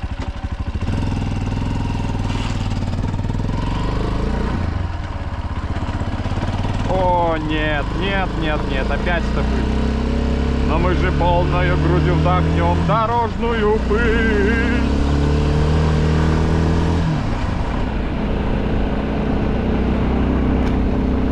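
Tyres crunch on a gravel road.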